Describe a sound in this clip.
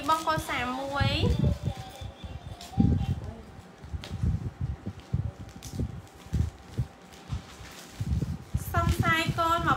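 Fabric rustles as clothing is handled.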